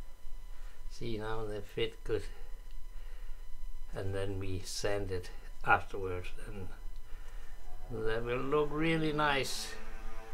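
A man speaks calmly and close by, in short phrases.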